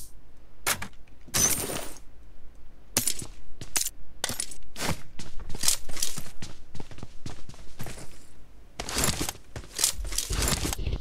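Footsteps crunch quickly on the ground.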